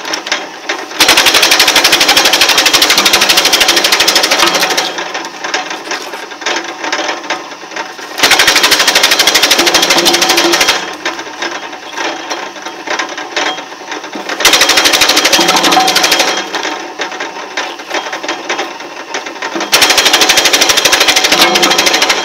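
A wood splitter grinds and rattles loudly through a log in bursts.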